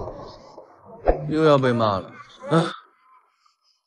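A young man exclaims briefly.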